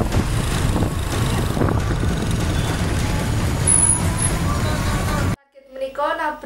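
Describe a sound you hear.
A motorcycle engine idles and rumbles close by.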